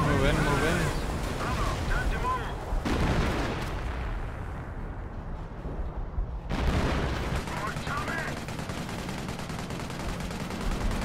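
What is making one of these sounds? A tank engine rumbles low.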